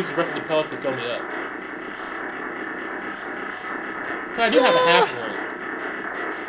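Electronic video game music plays steadily.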